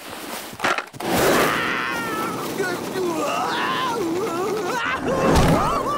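Skateboard wheels rumble over the ground.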